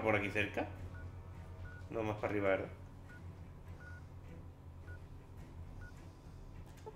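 Short electronic beeps tick one after another.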